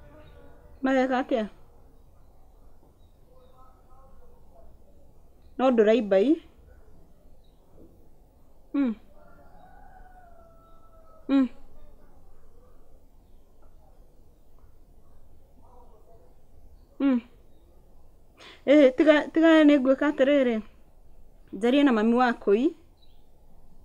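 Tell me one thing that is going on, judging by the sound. A woman talks on a phone in short bursts, close by.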